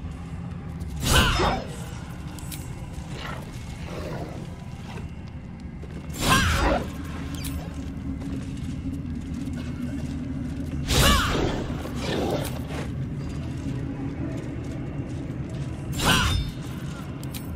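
Magic spells burst with loud, sharp whooshing blasts every few seconds.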